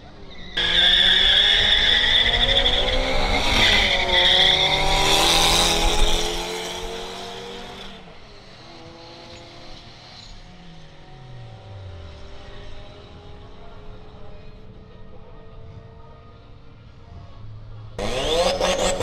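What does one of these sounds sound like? A car engine roars as a car accelerates hard away and fades into the distance.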